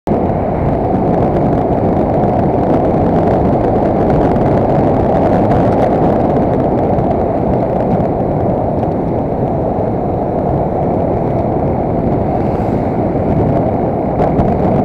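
Wind rushes loudly past a moving vehicle outdoors.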